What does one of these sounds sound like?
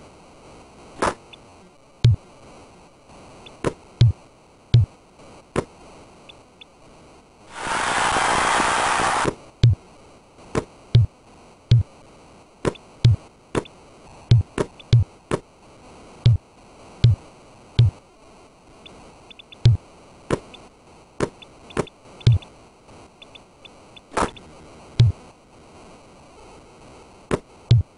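A basketball bounces on a court with dull, regular thuds.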